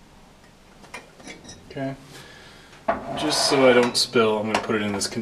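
Glassware clinks lightly against a hard surface.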